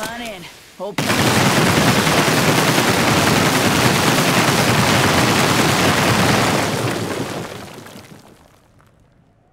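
A loud rushing hiss roars steadily, then fades away.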